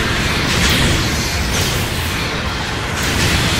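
Laser beams fire with a sharp electronic buzz.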